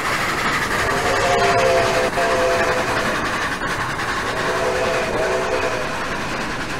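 A steam whistle blows twice.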